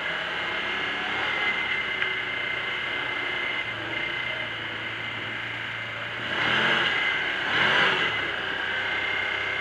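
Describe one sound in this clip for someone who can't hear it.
An off-road vehicle's engine hums steadily as it drives.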